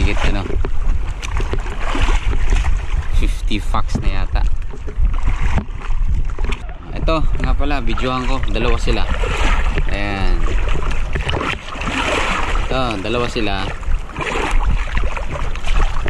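Water splashes and laps against a small boat.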